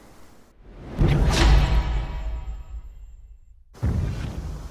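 A bright chime rings out and slowly fades.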